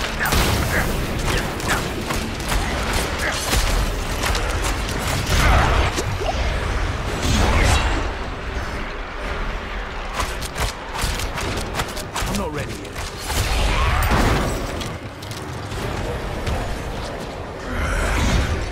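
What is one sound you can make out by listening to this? Magical blasts whoosh and crackle during a fight.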